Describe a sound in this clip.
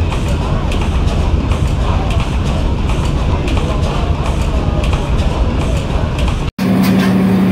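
A large old engine thumps steadily with rapid, heavy chugging.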